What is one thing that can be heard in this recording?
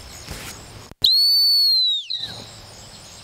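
A man blows a loud, shrill whistle that drops in pitch at the end.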